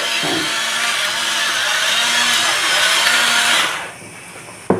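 A pepper mill grinds with a steady gritty crunch.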